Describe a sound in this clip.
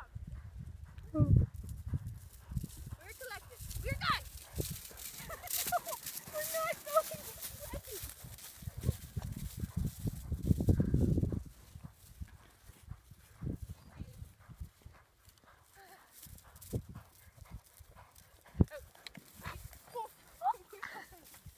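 A horse gallops with muffled hoofbeats on dry stubble.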